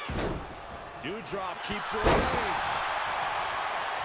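A body slams onto a wrestling ring mat with a thud.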